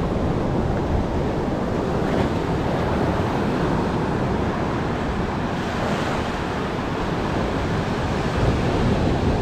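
Waves break and wash up onto the shore.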